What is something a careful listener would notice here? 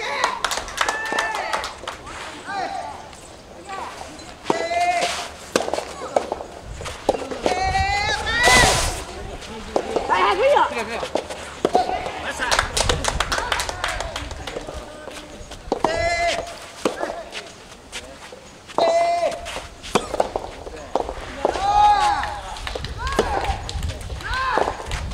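A ball is struck with a racket, with sharp pops back and forth.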